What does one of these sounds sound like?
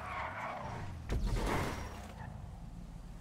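Car tyres thump and skid as the car lands after a jump.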